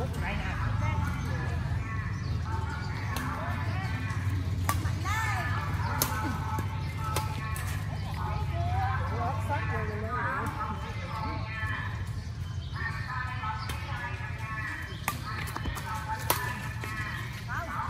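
Badminton rackets hit a shuttlecock outdoors.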